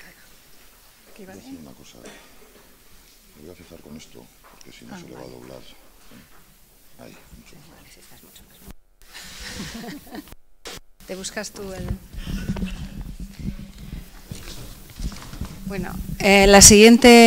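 A man speaks quietly through a microphone in a large hall.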